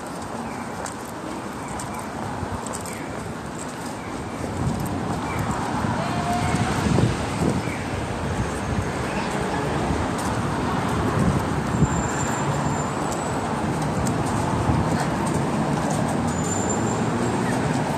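A busy street hums with a steady outdoor noise.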